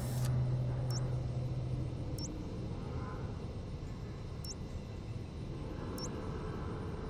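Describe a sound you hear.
Menu selections tick softly a few times.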